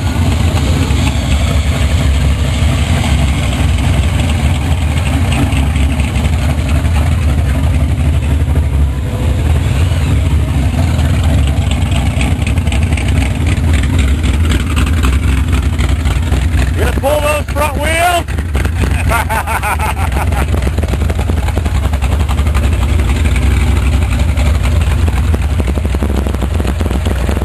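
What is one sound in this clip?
A large car engine rumbles loudly close by.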